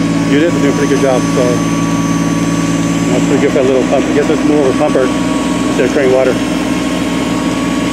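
A fire truck engine idles with a steady low hum.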